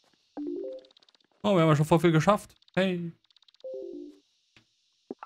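Short rising electronic chimes play.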